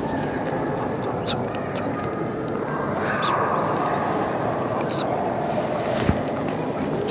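An elderly man reads aloud steadily into a microphone.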